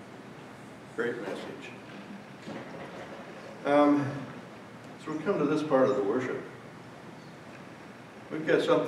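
An elderly man speaks calmly into a microphone, heard over loudspeakers in a large room.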